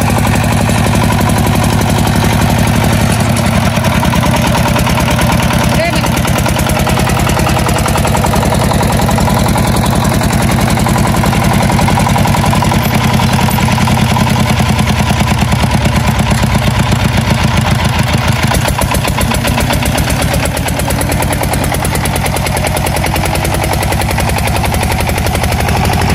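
A single-cylinder diesel engine chugs loudly and steadily close by.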